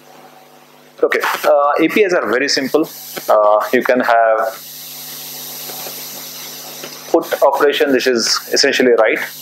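A man speaks calmly through a microphone in a large echoing room.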